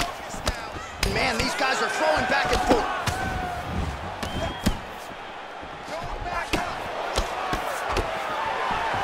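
Punches thud against a fighter's body.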